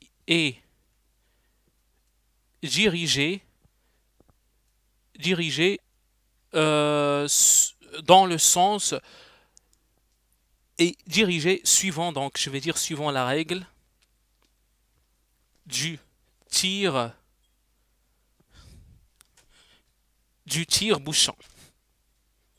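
A young man speaks calmly in short phrases through a close microphone.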